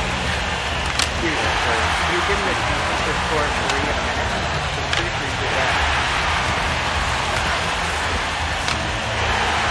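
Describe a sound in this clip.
A puck clacks sharply off sticks.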